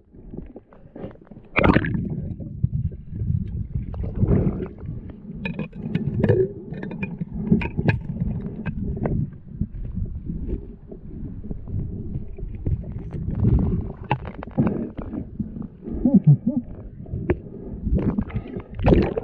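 Water splashes at the surface.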